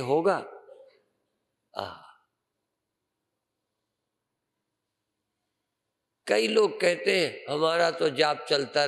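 An elderly man speaks calmly and earnestly into a microphone, pausing between phrases.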